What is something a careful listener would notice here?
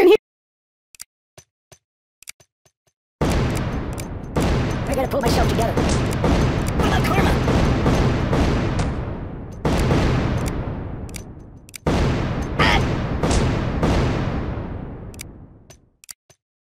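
Metal clinks and rattles as grenades land and bounce.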